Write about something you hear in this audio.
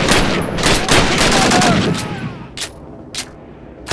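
A rifle's bolt clicks and clacks as it is reloaded.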